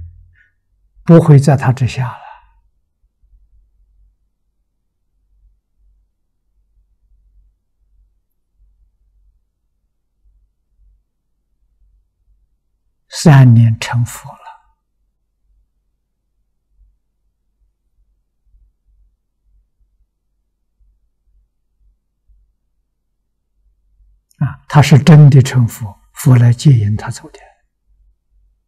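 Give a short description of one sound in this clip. An elderly man speaks calmly and slowly in short phrases, close to a microphone.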